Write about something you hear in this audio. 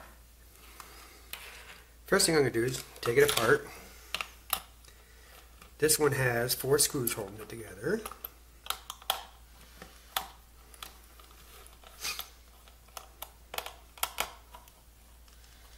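Plastic parts click and tap as hands handle a small controller.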